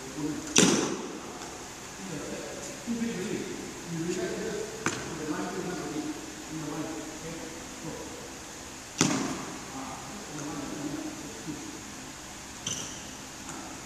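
Badminton rackets strike a shuttlecock with sharp smacks in an echoing hall.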